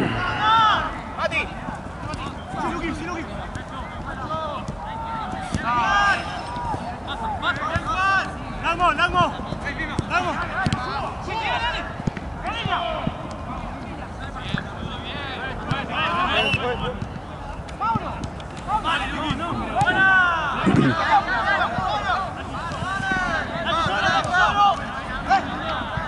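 Young men shout and call to each other across an open outdoor pitch.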